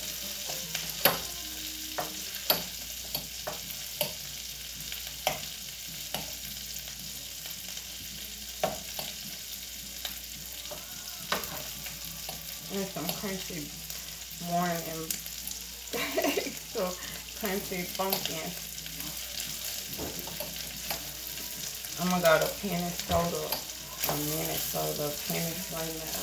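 A metal utensil clicks and scrapes against a pan.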